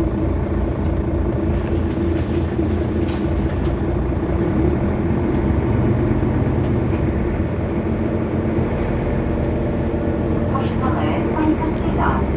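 A bus engine idles nearby with a steady low rumble.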